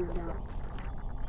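A pickaxe strikes a metal pole with sharp clangs.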